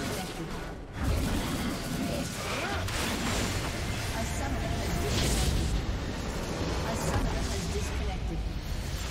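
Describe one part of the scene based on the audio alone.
Explosive magic blasts boom.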